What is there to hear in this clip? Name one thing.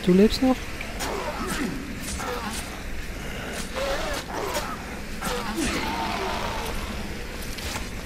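A melee weapon thuds into a body.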